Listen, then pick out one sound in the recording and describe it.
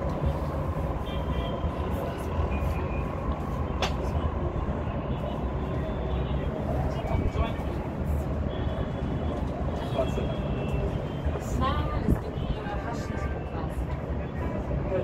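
Car horns honk in the traffic below.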